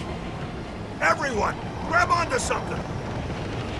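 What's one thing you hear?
A gruff man shouts.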